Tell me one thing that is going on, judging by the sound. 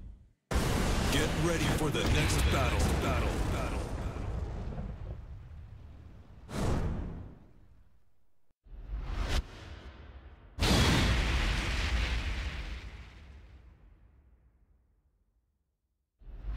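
A fiery whoosh swells with a deep boom and slowly fades.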